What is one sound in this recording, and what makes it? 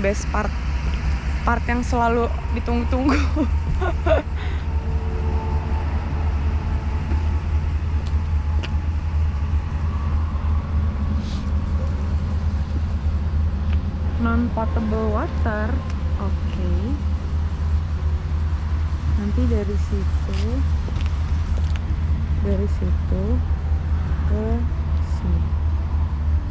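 A young woman talks calmly close to a microphone.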